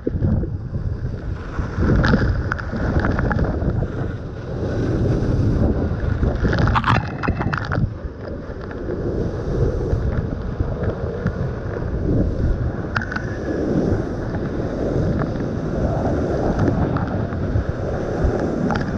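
A waterfall roars and crashes close by.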